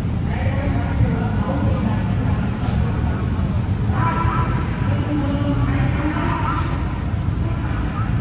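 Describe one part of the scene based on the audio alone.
A bus engine idles and rumbles nearby.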